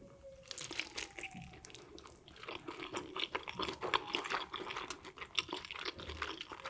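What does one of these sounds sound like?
A woman chews food wetly and crunchily close to a microphone.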